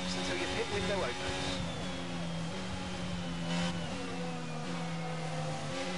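A racing car engine whines at high revs, its pitch jumping as the gears change.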